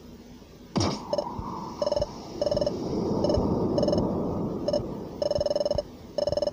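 Short electronic blips tick in quick bursts.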